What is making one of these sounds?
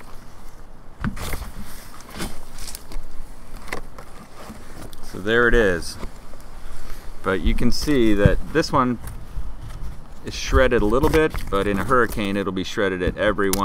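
A middle-aged man talks close by, calmly.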